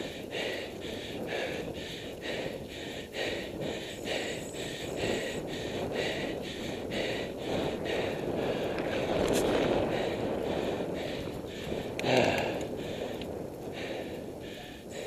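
A bicycle's freewheel ticks rapidly.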